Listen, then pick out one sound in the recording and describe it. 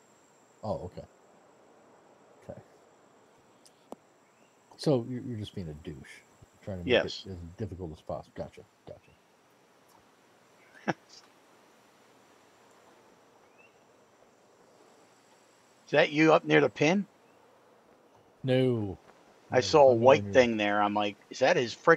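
A middle-aged man talks casually into a headset microphone, in short bursts.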